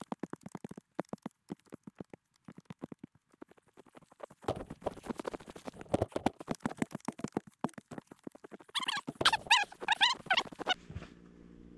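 A shovel scrapes and crunches into snow.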